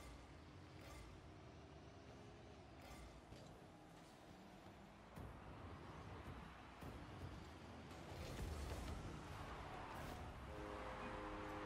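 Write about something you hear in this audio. A goal explosion booms.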